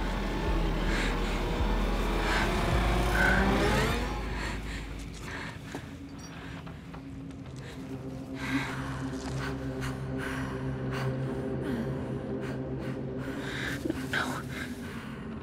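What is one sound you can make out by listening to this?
A young woman breathes heavily and shakily, close by.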